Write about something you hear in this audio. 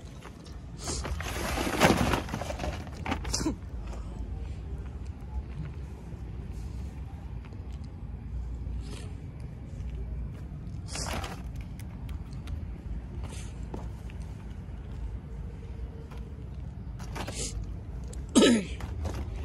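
Packaged toys drop with a thud into a plastic tub.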